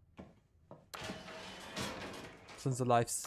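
An elevator hums as it moves.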